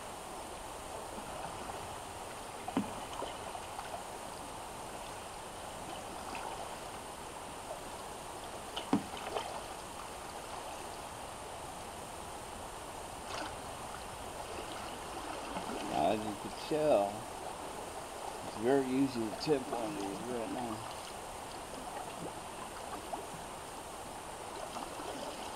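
A paddle splashes softly in water.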